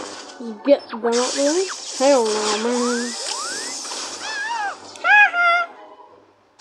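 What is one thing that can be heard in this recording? A small robot beeps and whistles.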